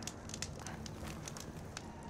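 A campfire crackles close by.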